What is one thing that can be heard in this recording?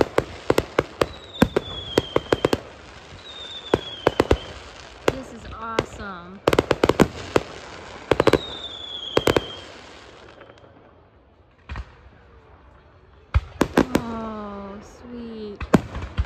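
A firework rocket whistles as it climbs.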